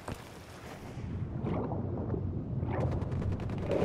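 Sound turns dull and muffled underwater.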